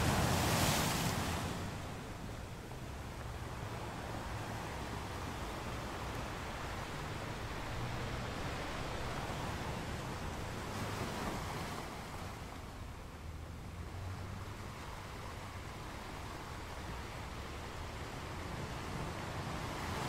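Ocean waves roll in and crash steadily against rocks.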